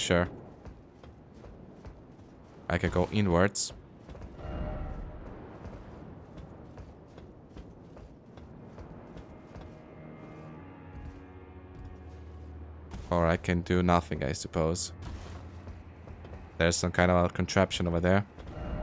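Footsteps tread on roof tiles and stone.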